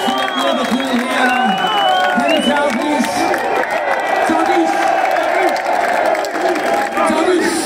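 A large crowd sings loudly together outdoors.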